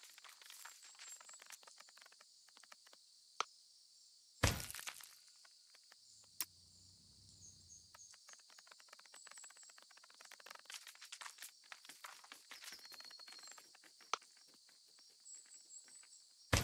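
Tiny insect legs patter and scratch over dry ground.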